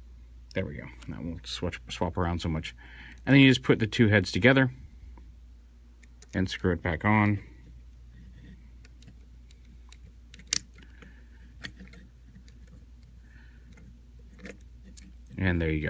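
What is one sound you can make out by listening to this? Plastic parts of a toy figure click and snap as they are moved.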